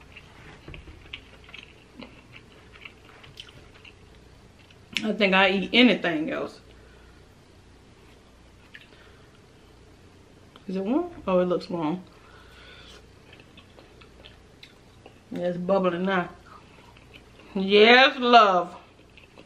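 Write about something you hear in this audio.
Small clicks and crackles of a woman eating are heard close up.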